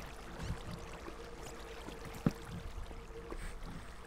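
Lava bubbles and pops nearby.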